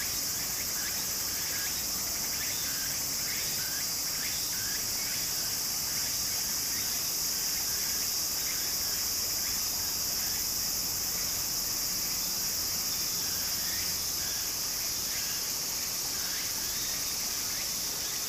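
Shallow water trickles and gurgles steadily over a sandy bed.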